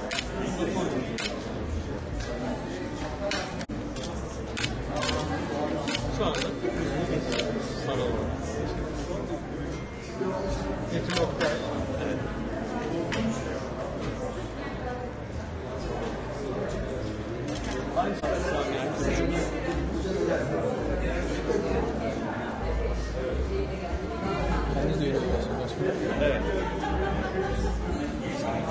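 A crowd of men and women chat and murmur nearby.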